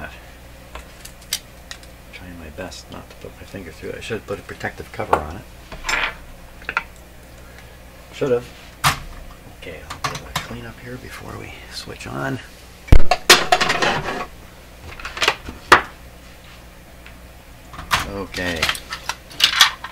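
Small tools and metal parts knock and clink against a hard surface.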